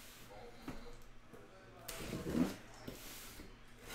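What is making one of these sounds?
A cardboard box scrapes and thumps as it is moved.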